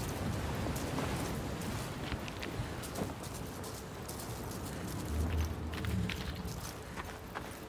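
Footsteps crunch on loose gravel.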